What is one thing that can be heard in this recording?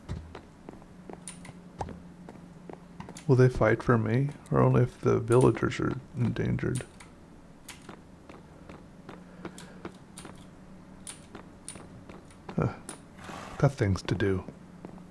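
Footsteps tap on a hard floor at a walking pace.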